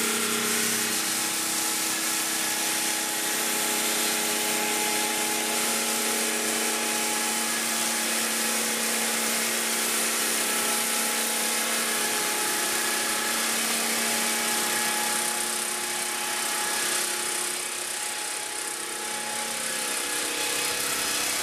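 A circular saw blade grinds loudly through stone.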